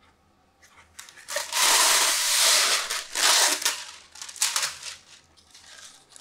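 A sheet of baking paper rustles and crinkles as it is pulled from a box.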